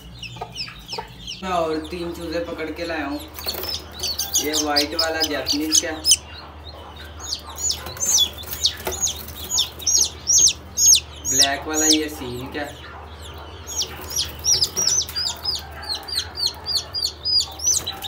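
Chicks peep rapidly and shrilly, close by.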